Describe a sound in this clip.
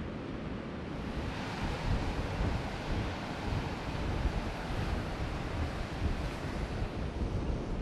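Waves crash and roar on a shore.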